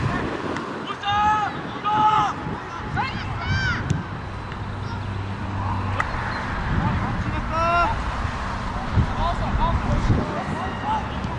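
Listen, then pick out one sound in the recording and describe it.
Men shout to each other across an open field at a distance.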